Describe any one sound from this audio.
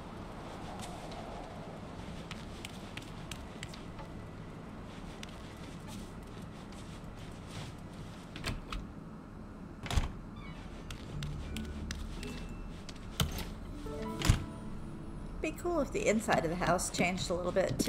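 Light footsteps patter on a hard floor.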